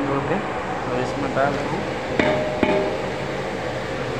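Chopped tomatoes tumble from a board into a pot.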